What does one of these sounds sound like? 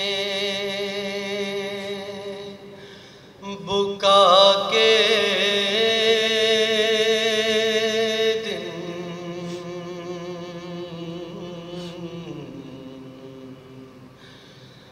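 A man chants in long, held, melodic tones through a microphone.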